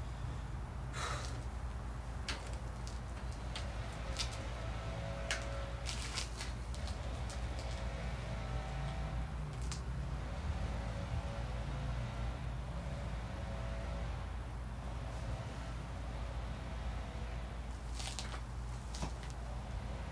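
Metal weights clink and knock.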